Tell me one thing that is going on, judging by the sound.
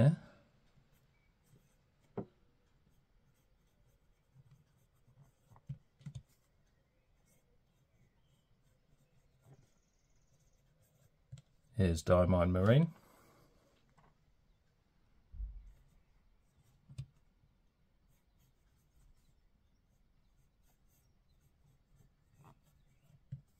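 A fountain pen scratches softly across paper.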